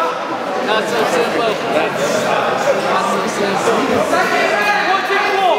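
Several men talk and call out in a large echoing hall.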